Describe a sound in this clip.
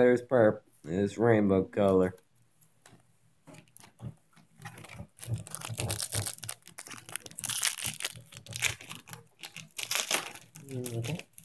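Cardboard and trading cards rustle and slide in someone's hands.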